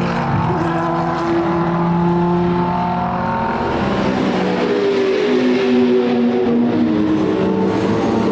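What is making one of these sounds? A racing car engine roars loudly as it speeds past and shifts gears.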